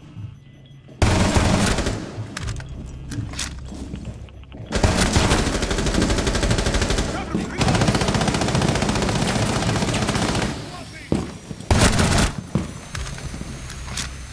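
Rapid gunshots fire at close range.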